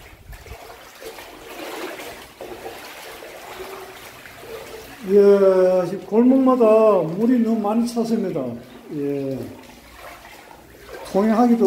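Shallow water sloshes softly as someone wades through it.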